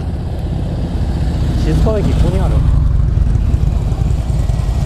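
Another motorcycle passes nearby with a loud, deep rumble.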